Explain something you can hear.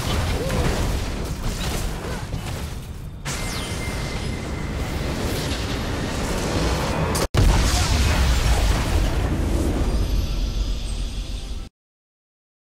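Game battle effects crash and boom.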